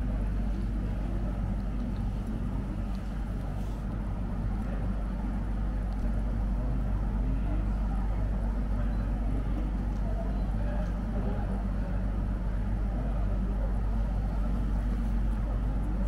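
An air conditioner hums steadily.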